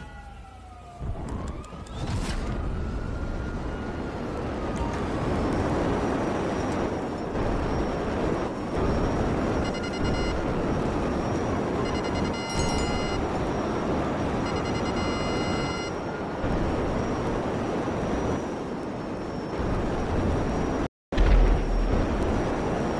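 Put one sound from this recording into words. A jetpack engine roars loudly and steadily.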